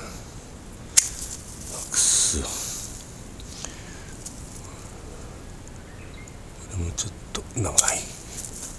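Pruning shears snip through thin branches.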